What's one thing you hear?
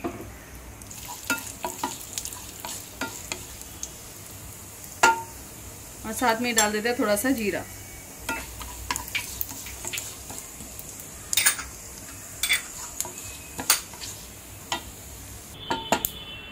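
Seeds sizzle softly in hot oil.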